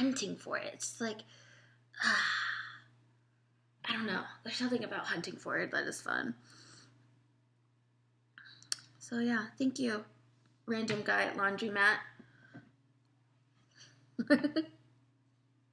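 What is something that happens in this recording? A young woman talks casually and animatedly close to a microphone.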